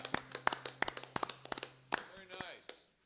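A man strums an acoustic guitar in sharp, quick strokes.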